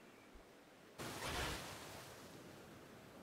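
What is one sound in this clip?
Water splashes as a creature leaps out of it.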